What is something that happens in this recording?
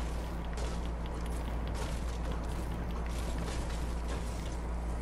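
A pickaxe strikes wood with sharp whacks.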